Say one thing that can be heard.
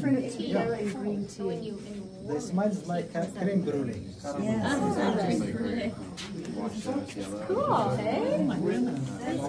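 Several men talk with animation close by.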